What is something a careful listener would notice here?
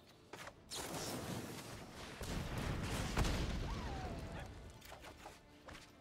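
A fiery magical whoosh rushes past.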